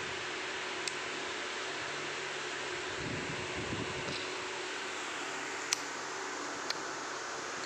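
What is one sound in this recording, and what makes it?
A small child babbles softly close by.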